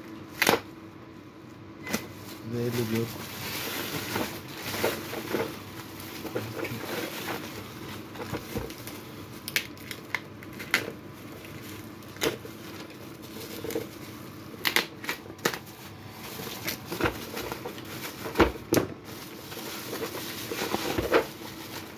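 Plastic bubble wrap crinkles and rustles as hands handle it.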